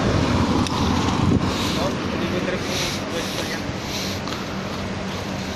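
A young man talks nearby.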